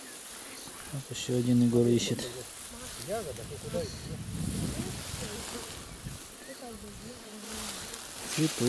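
Children talk and call out nearby.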